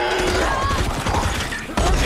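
A rifle fires a loud burst of shots.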